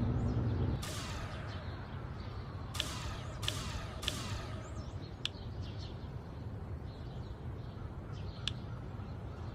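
Soft clicks tap now and then.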